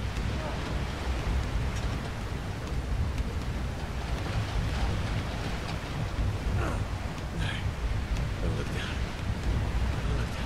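Heavy rain patters down.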